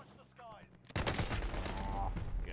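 A sniper rifle fires a loud shot in a game.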